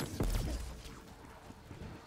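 A gun fires with loud blasts.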